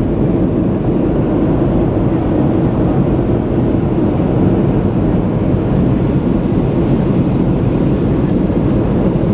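An airliner's turbofan jet engines roar steadily, heard from inside the cabin during descent.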